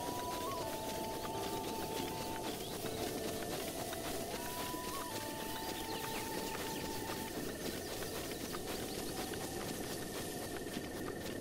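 Footsteps run quickly through tall grass.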